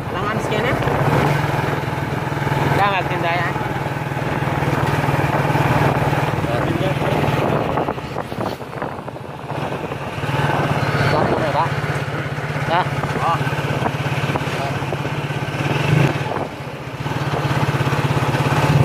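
A motorbike engine putters steadily up close, easing off briefly before picking up again.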